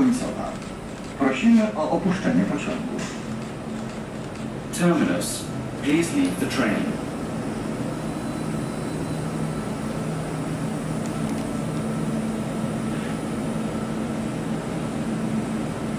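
A standing subway train hums steadily.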